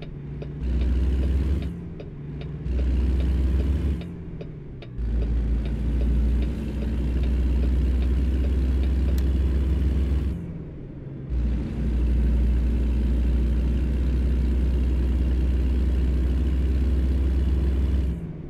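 A heavy truck engine rumbles and revs up through the gears.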